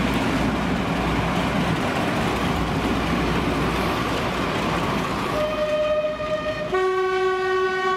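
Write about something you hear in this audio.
A Western class diesel-hydraulic locomotive roars past.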